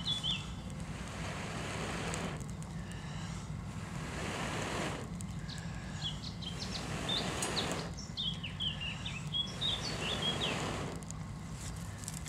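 A man blows in long, steady breaths onto a small fire close by.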